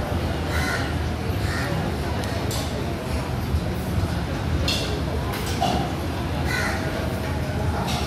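A crowd of people chatters in the background of a large, busy hall.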